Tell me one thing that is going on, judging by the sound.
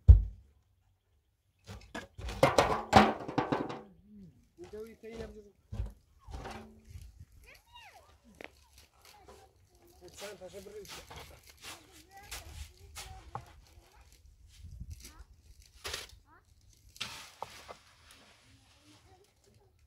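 A trowel scrapes and taps against concrete blocks.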